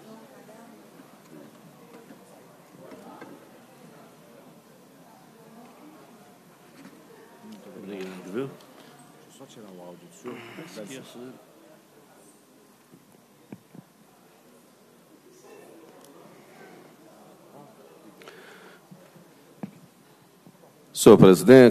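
Quiet voices murmur in a large echoing hall.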